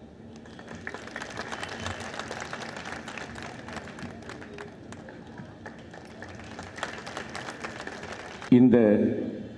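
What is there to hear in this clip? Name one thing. A crowd applauds and claps.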